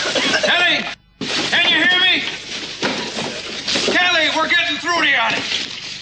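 Wood and debris clatter as they are pulled away.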